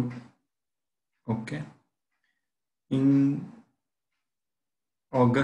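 A man speaks calmly and haltingly into a headset microphone, close up.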